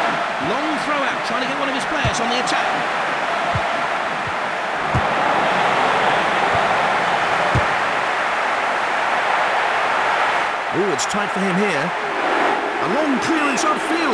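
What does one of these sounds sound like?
A large stadium crowd roars steadily.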